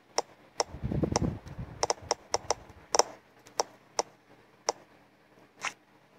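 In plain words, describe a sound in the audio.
A cartoon ball bounces with light, quick taps.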